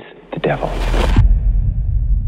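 A man speaks quietly and gravely.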